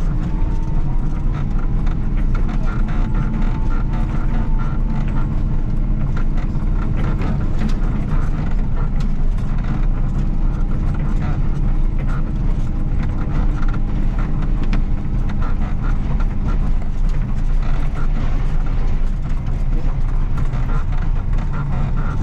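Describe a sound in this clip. A snow plough blade scrapes and crunches through snow.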